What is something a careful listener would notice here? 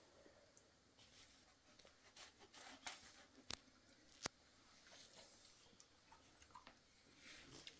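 A knife slices through a melon with soft wet cuts.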